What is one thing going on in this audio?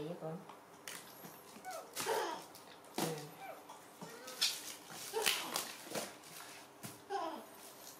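Cardboard milk cartons are shuffled in a wicker basket.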